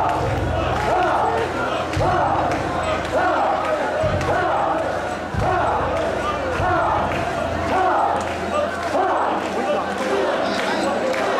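A large crowd of men chants loudly in rhythmic calls outdoors.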